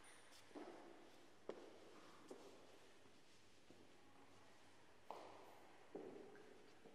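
Footsteps knock on a hard floor in a large echoing hall.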